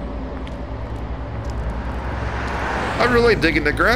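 A car engine hums as a car pulls up.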